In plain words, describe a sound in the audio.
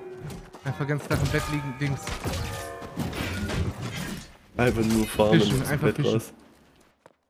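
Magic blasts and weapon strikes crash in a fierce fight.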